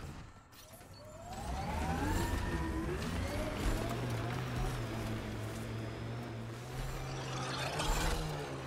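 A vehicle engine revs and roars as it speeds over rough ground.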